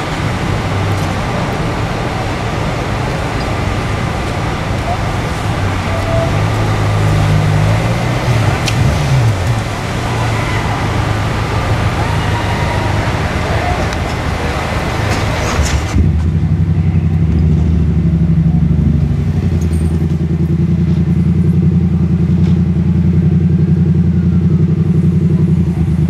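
Fire engines idle with a steady low rumble.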